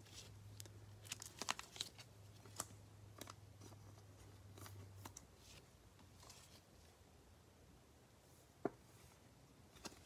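A plastic sleeve crinkles and rustles as a card slides into it.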